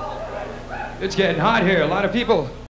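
A young man sings into a microphone over loudspeakers.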